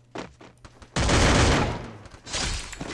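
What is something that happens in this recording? A loud burst of gunfire erupts close by.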